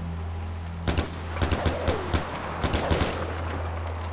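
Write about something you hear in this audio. A rifle fires a quick burst of loud shots.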